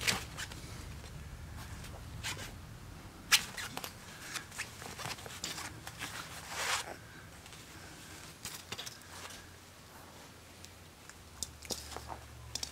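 A puppy nudges a plastic bauble that knocks and rolls.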